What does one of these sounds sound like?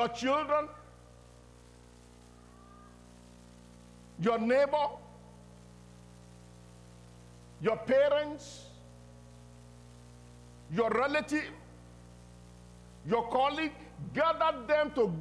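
A middle-aged man preaches forcefully into a microphone in short bursts, with pauses between them.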